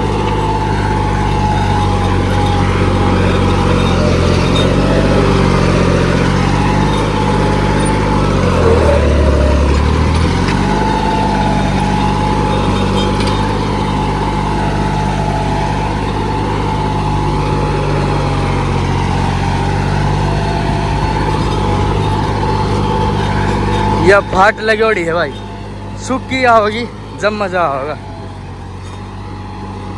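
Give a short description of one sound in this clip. A tractor engine runs with a steady, low rumble close by.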